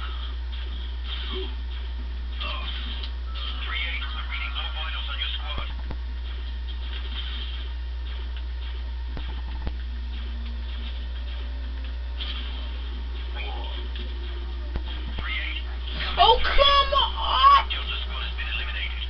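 Explosions boom from a television speaker.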